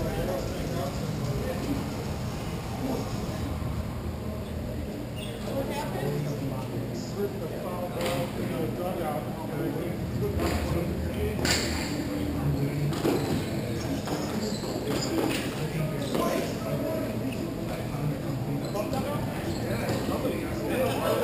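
Inline skate wheels roll and scrape across a hard rink floor.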